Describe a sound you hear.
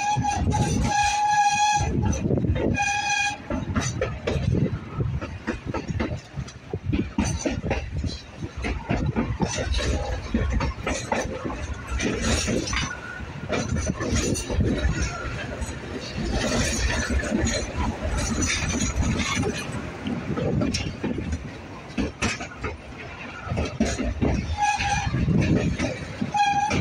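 Wind rushes past a moving rider outdoors.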